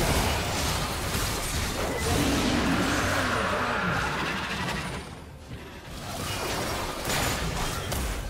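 Game spell blasts and battle effects crash and crackle.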